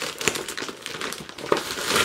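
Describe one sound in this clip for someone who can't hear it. Scissors snip through plastic.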